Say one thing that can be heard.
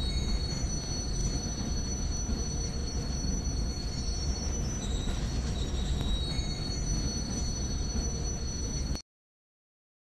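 A locomotive engine hums and rumbles steadily.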